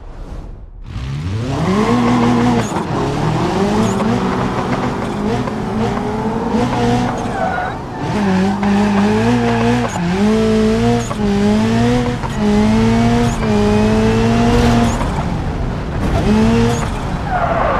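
A car engine revs up and down through the gears.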